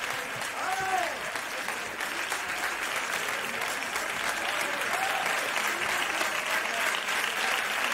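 A large audience claps and applauds steadily.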